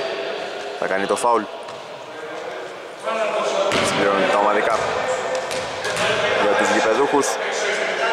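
Men shout to each other across a large echoing gym.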